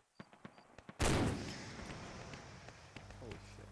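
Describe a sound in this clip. A rifle shot cracks and echoes across open country.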